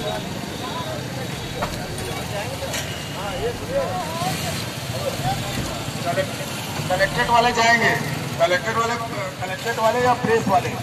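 Several men talk in the street outdoors.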